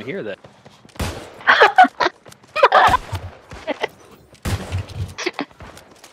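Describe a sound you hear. A musket fires loud, sharp shots.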